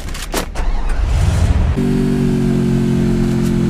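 A truck engine revs up and then drones steadily.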